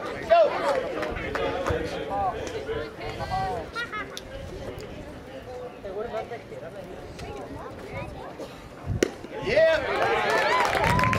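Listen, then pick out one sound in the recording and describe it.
Young players shout and chatter across an open field.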